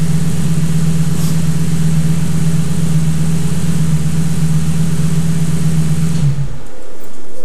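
A car engine idles with a low steady rumble, then shuts off.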